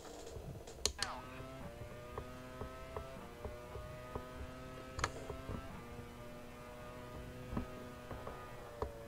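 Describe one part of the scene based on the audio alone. A racing car engine screams at high revs, dropping briefly with each gear change.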